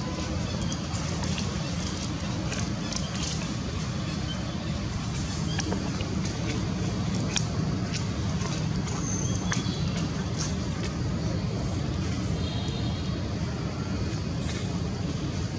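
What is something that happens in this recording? A monkey chews and smacks wet fruit up close.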